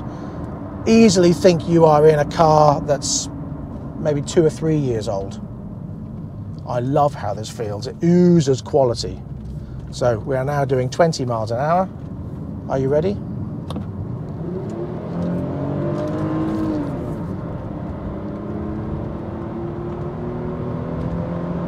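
A car's engine hums steadily as it drives along.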